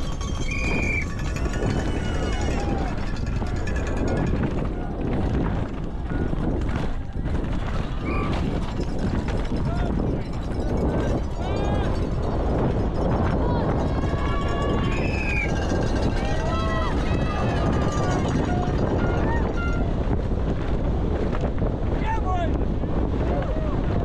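Spectators cheer and shout from the trackside.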